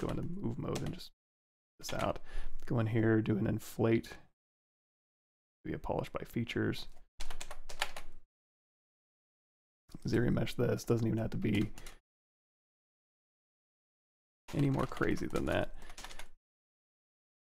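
A man talks calmly and casually into a close microphone, in short bursts with pauses.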